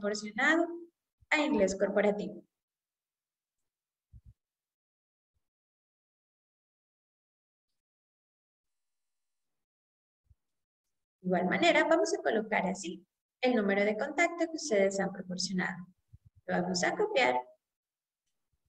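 A woman speaks calmly into a microphone, explaining.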